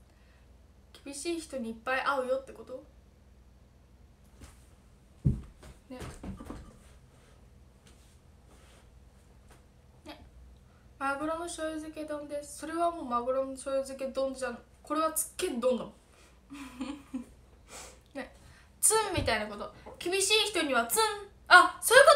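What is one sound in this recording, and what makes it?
A young woman speaks softly and close by, with pauses.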